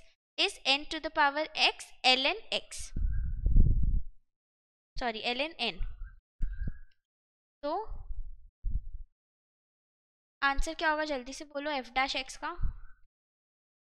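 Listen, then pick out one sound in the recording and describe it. A young woman speaks calmly into a close microphone, explaining in short bursts.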